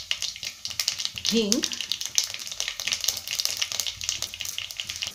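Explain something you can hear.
Seeds sizzle and pop in hot oil in a metal pot.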